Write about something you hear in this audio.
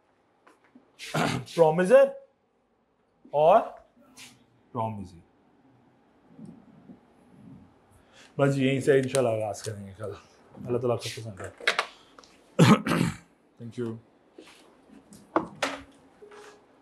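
A man lectures calmly through a microphone, speaking in short bursts.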